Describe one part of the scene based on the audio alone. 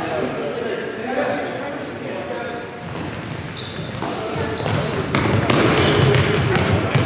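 Players' footsteps thud and patter across a large echoing hall.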